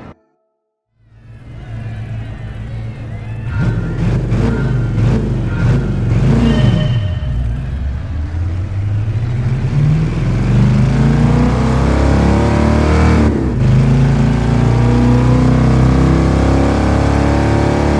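A powerful car engine idles, then revs and roars as the car accelerates, rising in pitch through the gears.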